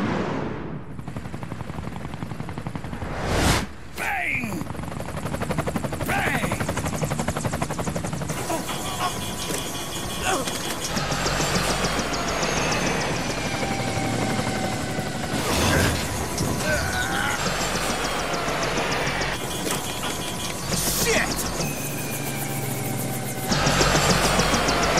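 Helicopter rotors thud loudly overhead.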